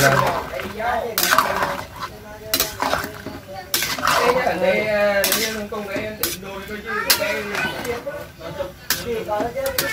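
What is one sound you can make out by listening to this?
A metal spatula stirs and scrapes mushrooms in a metal pot.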